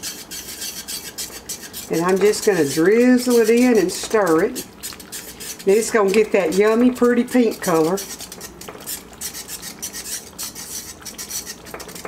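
A spoon scrapes through sauce in a pan.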